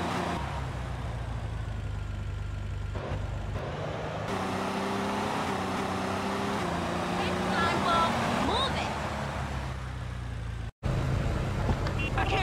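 A van engine hums steadily as it drives along a road.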